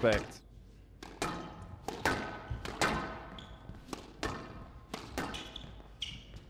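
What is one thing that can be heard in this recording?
A squash ball smacks sharply off rackets and walls in a fast rally, echoing in a hall.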